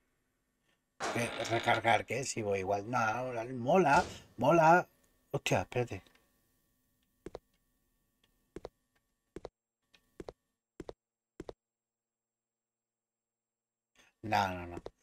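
A young man talks into a microphone with animation, close up.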